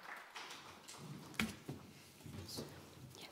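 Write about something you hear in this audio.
A woman speaks softly into a microphone.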